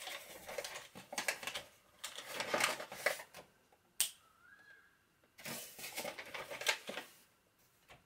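A paper bag rustles and crinkles as a hand rummages inside it.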